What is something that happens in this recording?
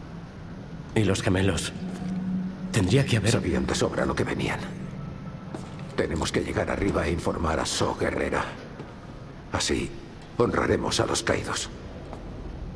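A second young man speaks calmly.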